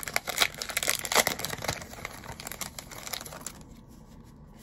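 Cards and packaging rustle and crinkle in someone's hands.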